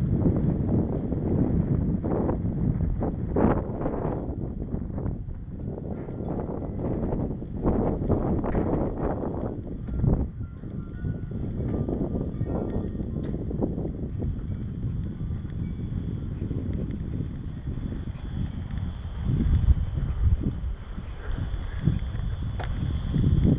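Wind rumbles loudly against a moving bicycle.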